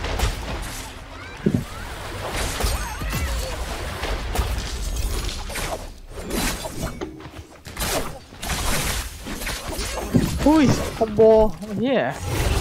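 Magic blasts whoosh and boom.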